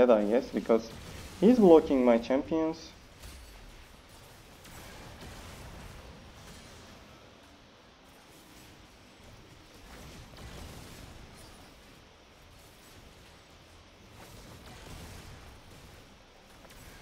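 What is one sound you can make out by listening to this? Fantasy battle effects crackle and whoosh softly.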